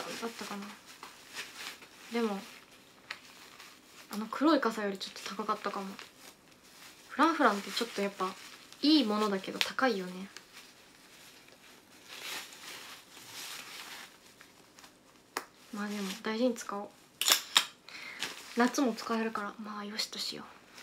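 A young woman speaks softly and casually into a nearby microphone, in short bursts with pauses.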